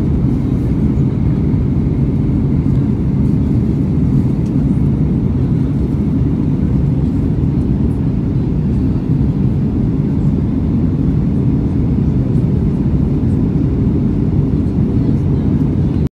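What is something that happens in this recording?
Jet engines roar steadily inside an airliner cabin in flight.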